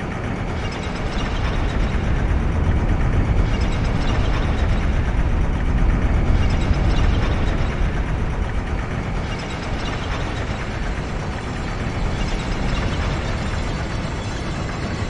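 A magical energy swirls with a steady, low roaring hum.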